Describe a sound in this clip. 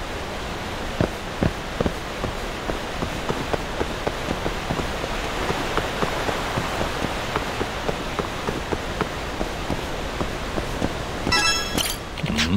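Footsteps patter quickly on a hard floor in an echoing tunnel.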